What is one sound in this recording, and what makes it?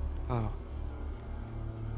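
A man speaks quietly nearby.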